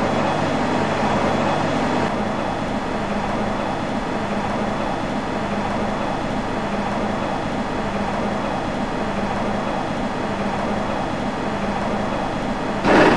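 A train's electric motor hums steadily as the train runs along the tracks.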